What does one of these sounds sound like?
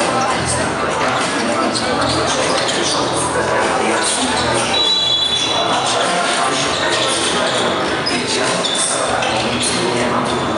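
Sneakers squeak on a wooden court in a large echoing hall.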